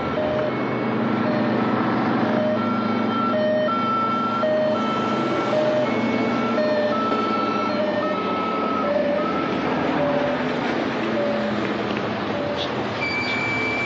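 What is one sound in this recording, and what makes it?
A motorcycle engine putters past.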